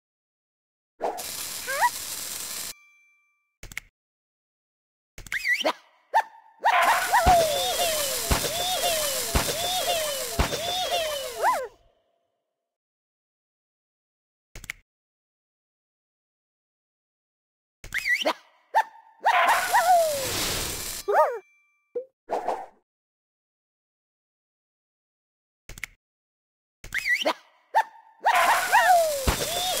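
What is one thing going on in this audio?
Cheerful game sound effects chime and pop in bursts.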